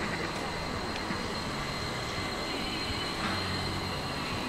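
A river flows and babbles steadily nearby.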